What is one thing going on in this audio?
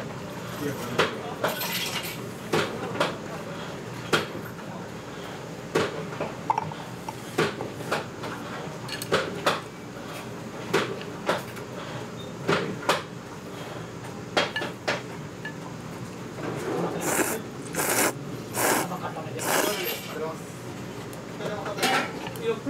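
Chopsticks and a spoon clink against a bowl.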